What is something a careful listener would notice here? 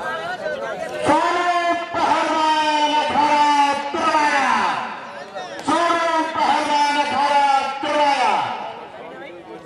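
A man announces loudly through a loudspeaker, his voice echoing.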